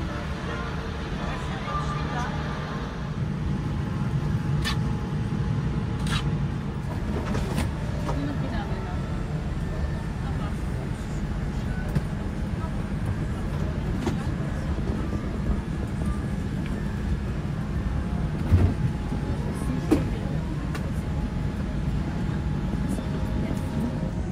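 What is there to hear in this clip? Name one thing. A steady low hum of cabin air fills the space.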